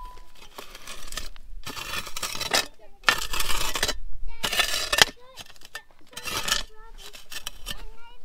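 A plastic shovel scrapes and scoops through ash.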